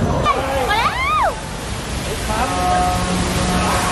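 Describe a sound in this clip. Water crashes and splashes in a heavy spray.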